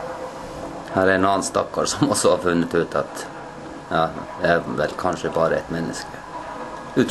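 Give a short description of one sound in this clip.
A middle-aged man speaks calmly, close to the microphone.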